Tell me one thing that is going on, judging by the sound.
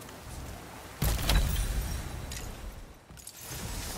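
A blade strikes with a sharp, ringing impact.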